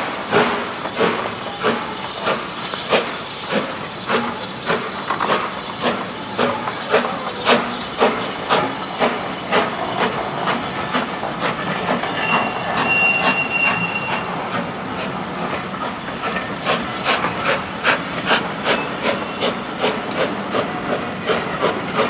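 A steam locomotive chuffs rhythmically as it pulls away.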